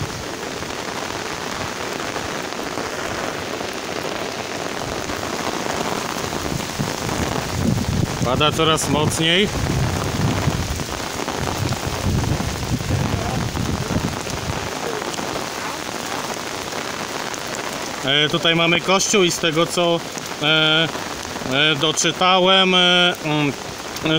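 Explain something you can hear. Rain falls steadily and patters on wet pavement outdoors.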